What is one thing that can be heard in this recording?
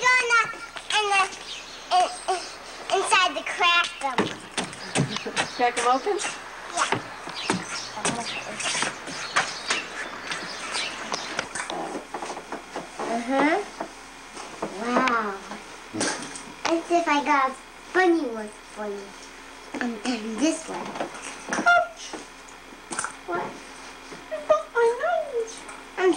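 A young girl talks and chatters excitedly close by.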